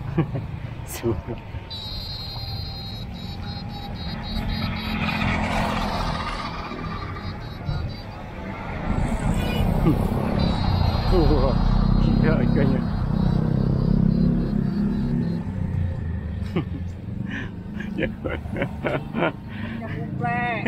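Motorbike engines drone as they pass on a nearby road.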